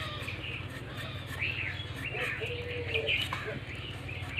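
A blade scrapes the skin off a potato.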